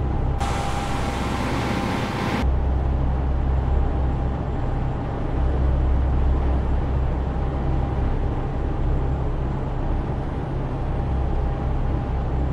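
Tyres hum steadily on the road.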